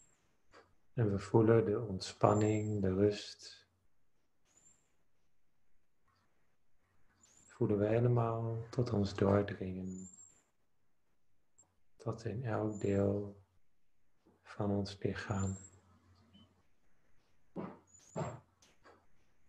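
A young man speaks slowly and calmly in short phrases through an online call.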